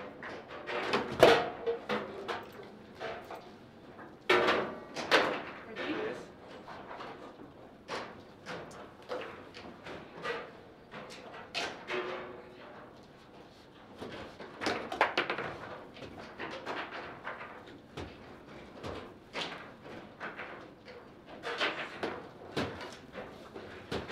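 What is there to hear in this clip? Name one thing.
A foosball ball clacks and knocks against plastic figures and the table walls.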